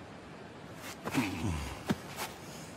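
A man speaks angrily in a gruff, strained voice.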